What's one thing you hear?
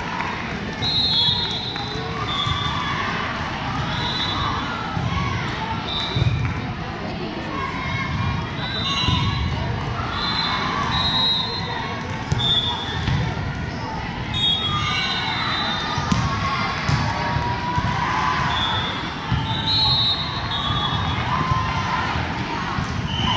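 Sneakers squeak sharply on the wooden court.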